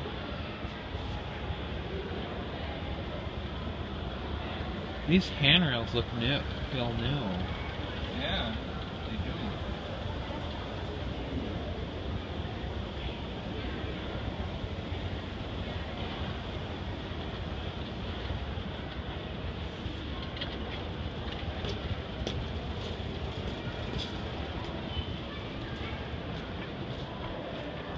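A descending escalator hums and rumbles.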